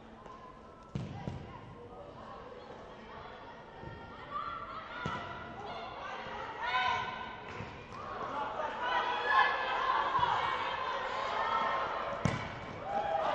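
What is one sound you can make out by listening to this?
A ball is kicked with sharp thuds that echo through a large hall.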